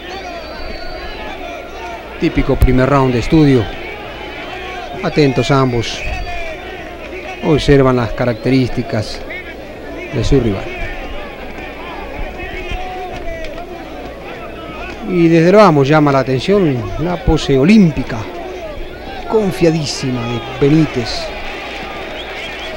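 A large crowd murmurs steadily in a big hall.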